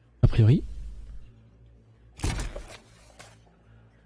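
A book opens with a rustle of pages.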